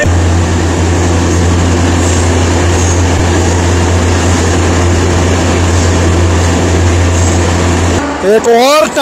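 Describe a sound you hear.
A train rumbles steadily through a long tunnel.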